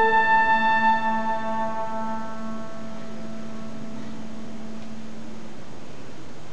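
A small brass ensemble holds a final chord that fades away in a large hall.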